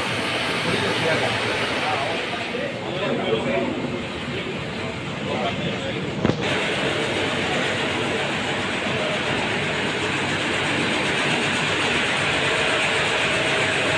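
Factory machinery hums and rattles steadily in a large echoing hall.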